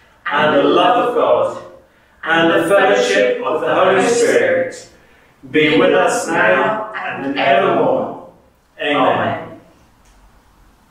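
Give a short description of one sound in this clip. A man sings through a microphone, in short phrases with pauses between them.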